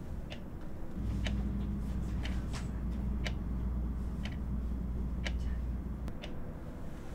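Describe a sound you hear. A clock ticks steadily.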